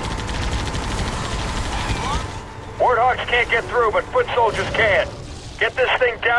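Gunfire and explosions rumble from a battle.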